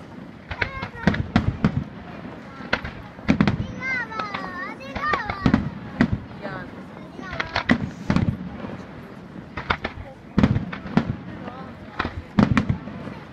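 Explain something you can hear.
Fireworks burst with loud, sharp bangs and booms echoing in the open air.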